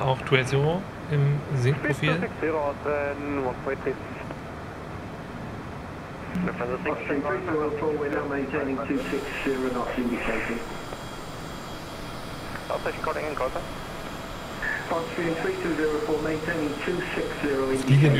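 A man talks calmly into a close microphone, with pauses.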